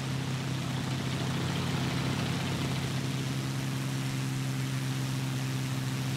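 A propeller engine drones steadily at a low pitch.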